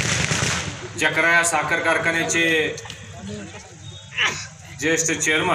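A man makes a speech loudly into a microphone, heard through loudspeakers.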